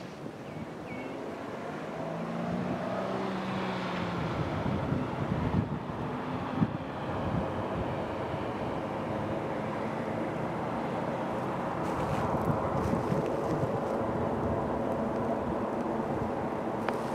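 A diesel train engine rumbles as it approaches, slowly growing louder.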